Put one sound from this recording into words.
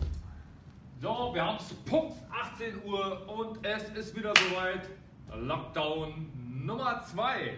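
A young man speaks calmly and clearly, close by, in a room with some echo.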